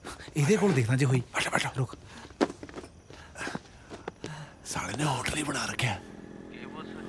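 Young men laugh and shout playfully nearby.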